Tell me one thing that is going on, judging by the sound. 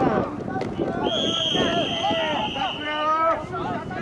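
A referee's whistle blows a long, steady blast.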